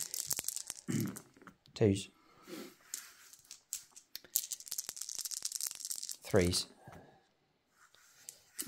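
Dice clatter and roll onto a table.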